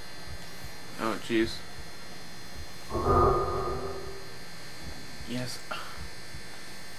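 A young man close to a microphone makes short, sudden exclamations.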